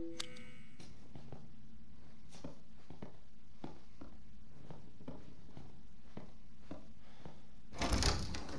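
Footsteps creak slowly on a wooden floor.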